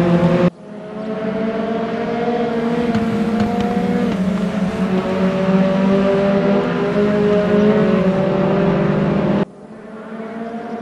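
Another racing car engine drones nearby.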